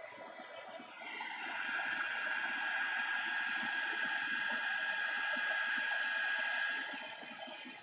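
A spray can hisses in a steady burst.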